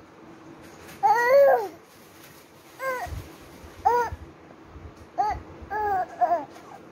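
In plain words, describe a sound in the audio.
A baby coos and babbles softly up close.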